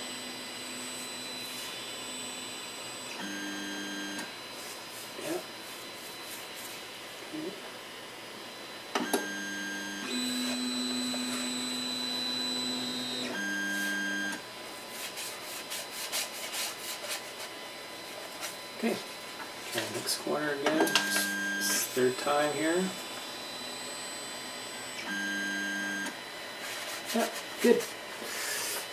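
A sheet of paper rustles and taps under a hand.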